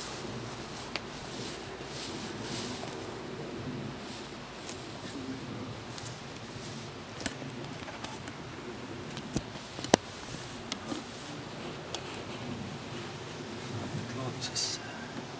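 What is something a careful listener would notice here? Wooden boxes knock and clatter as they are set down and handled.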